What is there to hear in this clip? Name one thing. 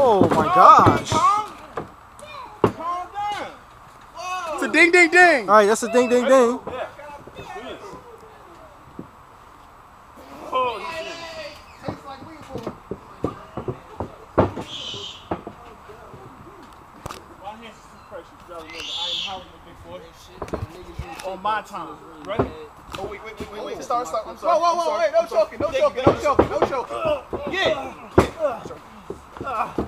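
Men talk and shout with animation close by, outdoors.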